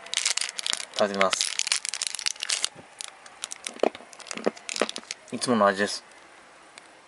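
A plastic bag crinkles and rustles between fingers.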